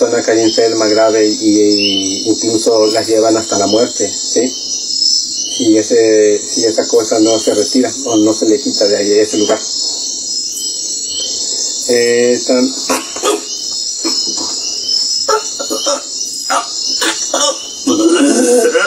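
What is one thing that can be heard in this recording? A young man speaks close by with animation.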